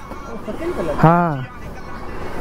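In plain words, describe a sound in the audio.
A man calls out briefly.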